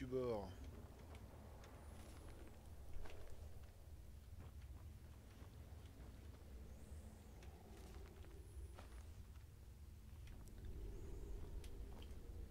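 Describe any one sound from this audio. A small flame crackles softly.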